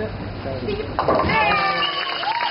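Bowling pins crash.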